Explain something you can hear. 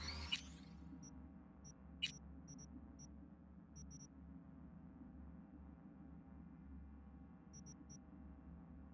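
Short, soft electronic ticks sound now and then.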